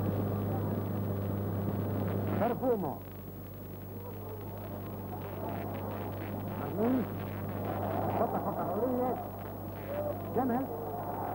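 A stadium crowd murmurs and cheers in the distance.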